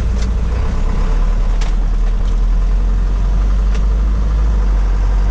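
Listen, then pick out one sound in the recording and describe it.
Tyres roll on the road with a steady noise.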